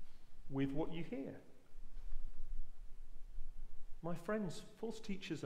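A middle-aged man speaks calmly and expressively into a microphone in a reverberant hall.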